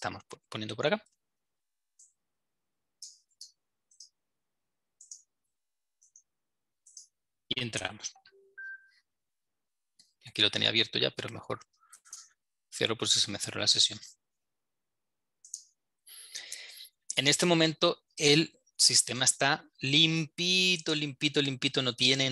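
A man speaks calmly through an online call, in bursts with pauses.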